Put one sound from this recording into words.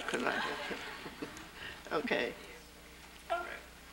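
An elderly woman speaks and laughs softly into a microphone.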